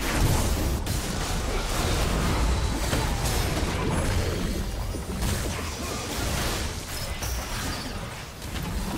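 Spell effects crackle and burst during a battle.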